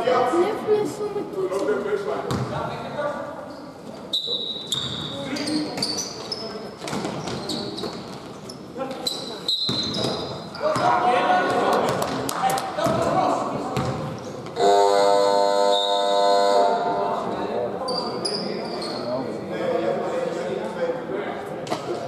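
Young men shout to each other in an echoing hall.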